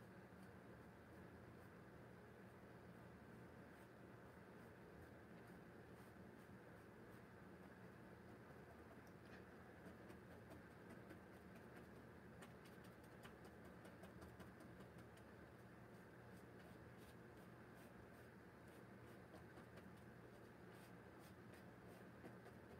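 A brush dabs and scrapes softly on canvas.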